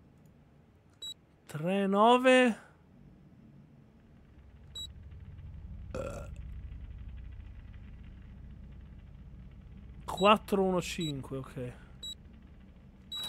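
Keypad buttons beep as they are pressed.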